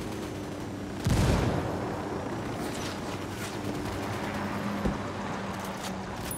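A helicopter's rotor thrums steadily overhead.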